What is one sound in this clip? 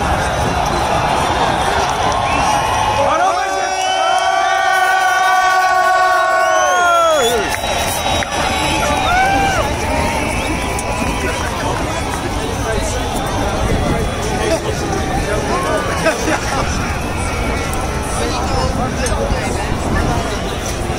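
A large crowd murmurs and calls out outdoors.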